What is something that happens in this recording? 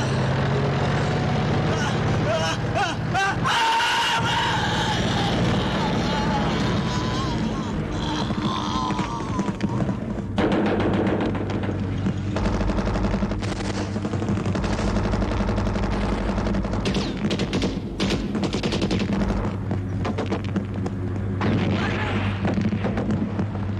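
A tank engine rumbles loudly and its tracks clank over dirt.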